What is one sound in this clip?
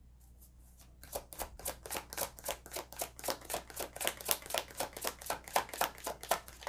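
A deck of cards is shuffled with quick, rhythmic riffling clicks.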